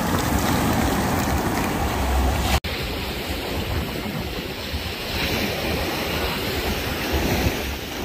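Shallow waves wash and fizz over sand.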